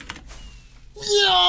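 A young man shouts excitedly close to a microphone.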